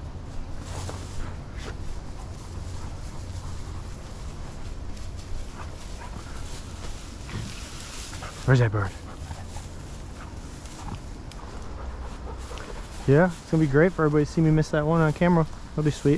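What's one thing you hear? A dog rustles through dry brush and grass.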